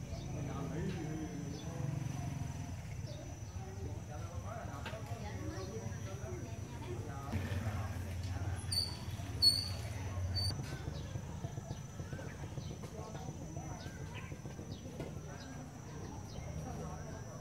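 Small fish splash lightly at the surface of still water.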